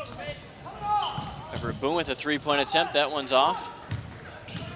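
A crowd cheers and shouts in the stands.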